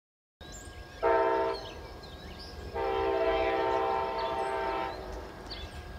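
A train horn blasts loudly, twice.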